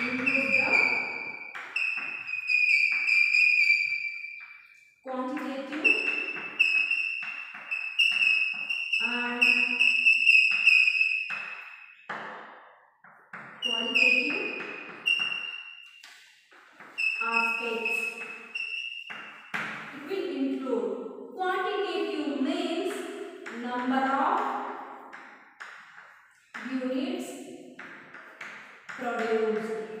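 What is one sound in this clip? Chalk squeaks and taps on a board.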